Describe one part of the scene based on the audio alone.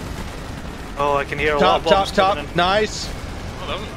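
Anti-aircraft guns fire rapid bursts.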